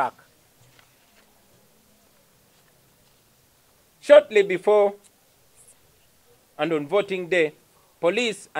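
A young man speaks slowly and deliberately into a microphone, with long pauses.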